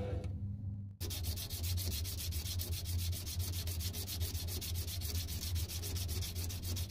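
A small metal part scratches rapidly back and forth on sandpaper.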